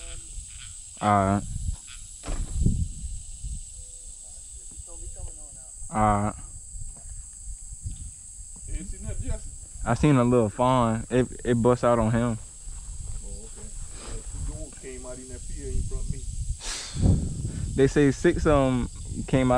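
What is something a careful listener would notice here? A man talks outdoors in a raised, animated voice.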